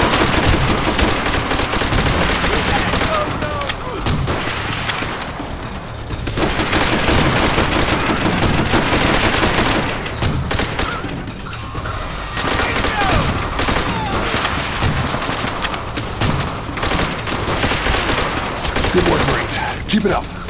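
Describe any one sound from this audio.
Rapid gunfire rattles loudly and close by.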